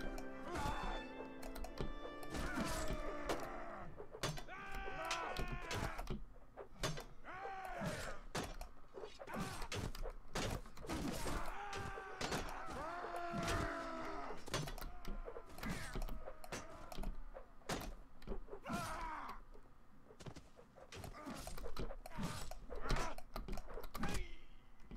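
Metal swords clash and clang repeatedly.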